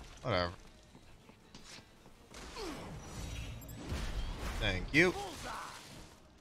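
A young woman exclaims into a microphone.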